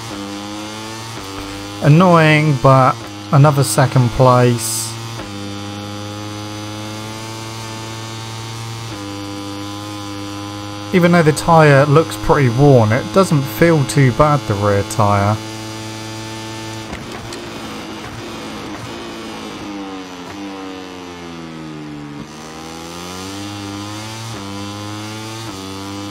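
A motorcycle engine drones steadily at high speed.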